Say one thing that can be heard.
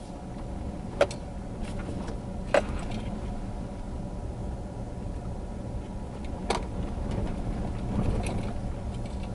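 Loose stones knock against the underside of the vehicle now and then.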